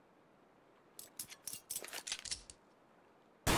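A gun is put away and another drawn with quick metallic clicks and rattles.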